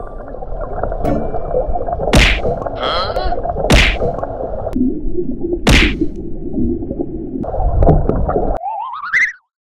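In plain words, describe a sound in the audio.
Water rushes and bubbles, muffled as if heard underwater.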